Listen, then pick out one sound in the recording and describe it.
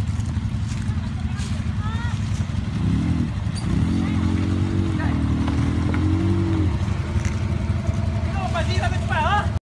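Quad bike engines idle and rumble close by.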